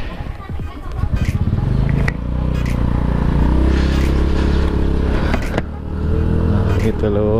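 A scooter engine revs up as the scooter rides off.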